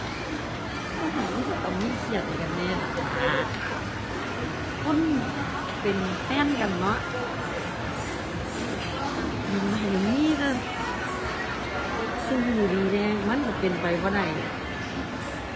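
A woman speaks close to a phone microphone, softly and in a muffled voice.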